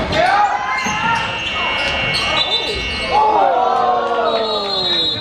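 Spectators murmur and call out in the background.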